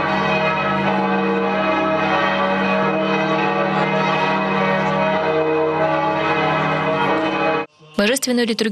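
A choir of men sings in long, steady chords.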